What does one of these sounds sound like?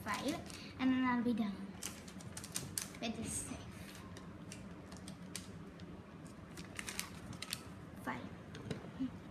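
Paper crinkles and rustles in hands.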